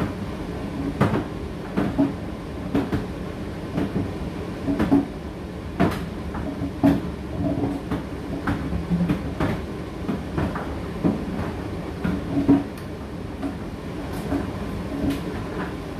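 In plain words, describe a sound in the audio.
A tumble dryer's drum thumps as the load tumbles.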